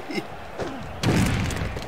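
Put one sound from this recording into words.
A body slams down onto a wrestling mat with a heavy thud.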